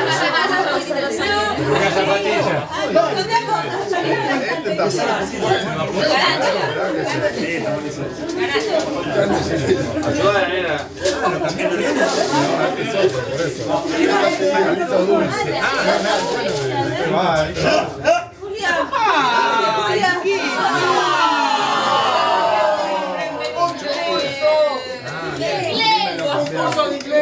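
Several people talk and chatter at once nearby in a room.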